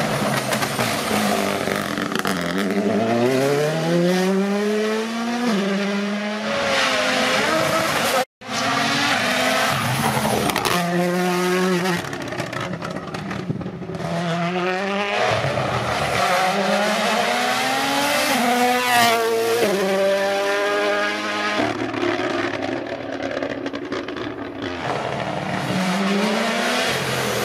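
A rally car engine roars and revs hard, rising and falling in pitch as the car speeds by.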